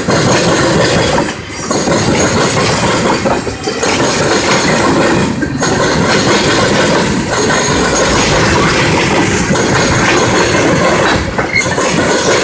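Steel wheels squeal and screech on the rails.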